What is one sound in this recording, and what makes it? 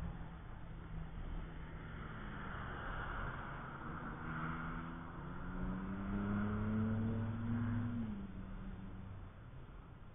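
A race car engine roars past at speed, rising in pitch as it goes.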